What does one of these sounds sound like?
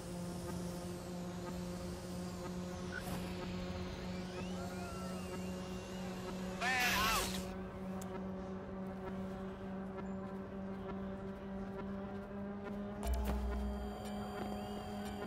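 A small drone buzzes steadily.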